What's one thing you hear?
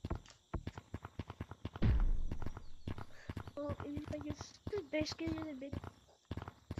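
Footsteps tap quickly on stone.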